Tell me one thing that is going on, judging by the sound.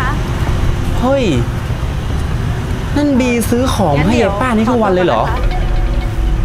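Two women argue loudly at a distance.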